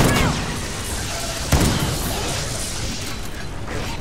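A knife slashes with a whoosh.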